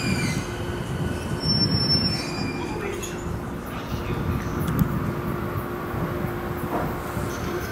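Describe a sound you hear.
A train rumbles steadily along the tracks, rattling and humming.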